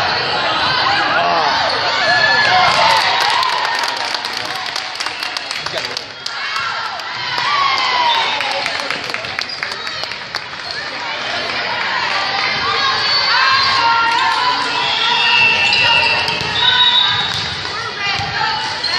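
A crowd shouts and cheers in a large echoing gym.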